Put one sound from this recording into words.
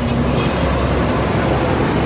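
A motorbike engine hums as it passes.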